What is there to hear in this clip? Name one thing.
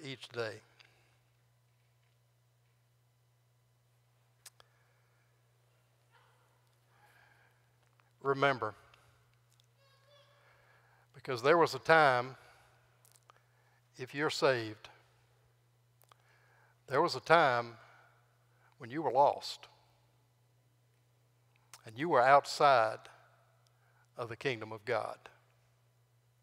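An elderly man speaks through a microphone in bursts, with long pauses, in a room with some echo.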